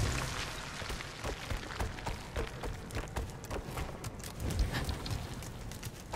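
Light footsteps patter quickly on stone.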